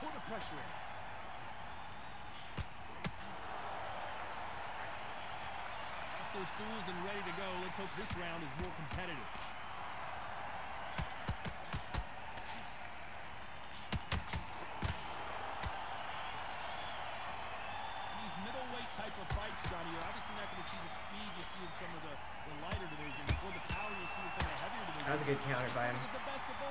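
Punches thud and smack against a boxer's body.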